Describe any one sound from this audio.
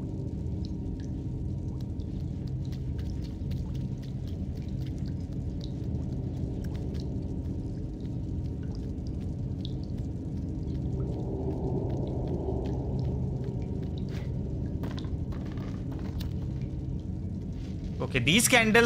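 A low, steady droning hum fills the space.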